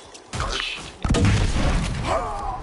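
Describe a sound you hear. A grenade explodes with a loud, deep boom that rumbles on.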